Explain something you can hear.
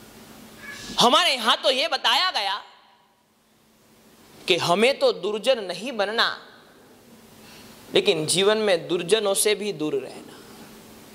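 A man chants in a melodic, wavering voice through a microphone, in short phrases with pauses.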